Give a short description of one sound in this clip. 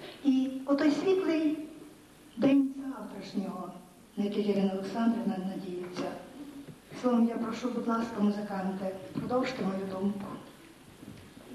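An accordion ensemble plays a lively tune.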